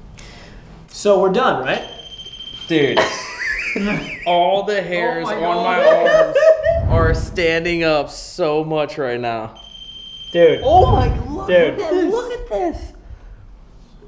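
Young men talk and laugh excitedly nearby.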